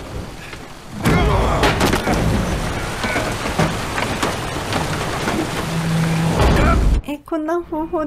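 Glass shatters loudly and shards rain down.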